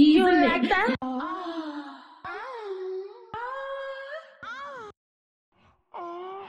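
A young woman sings softly in long, gliding notes.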